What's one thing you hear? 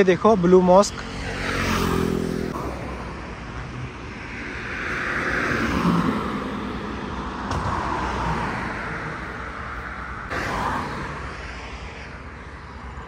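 Cars pass by on a road with a rushing whoosh.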